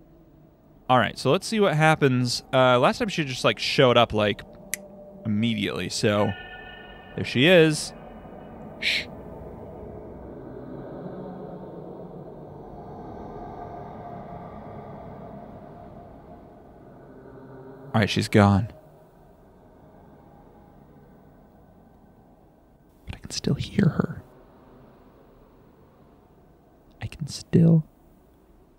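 A young man talks into a close microphone in a hushed, tense voice.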